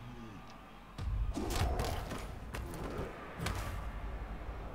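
Heavy thuds and crashes of players colliding ring out.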